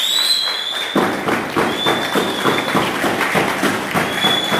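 A crowd of people claps in rhythm.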